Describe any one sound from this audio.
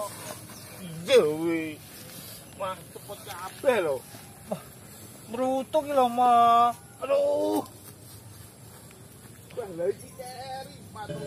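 A young man moans and speaks in a strained voice.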